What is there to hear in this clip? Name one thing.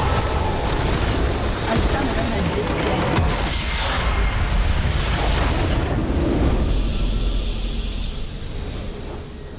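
Game spell effects crackle and boom in a loud battle.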